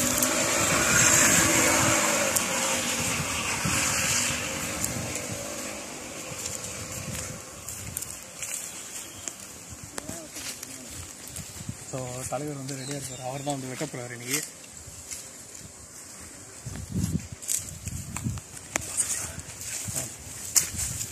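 Footsteps crunch over dry leaves and grass.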